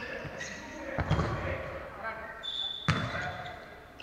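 A ball thuds on the floor.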